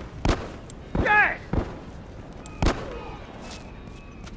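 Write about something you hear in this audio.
Heavy blows thud in a close fight.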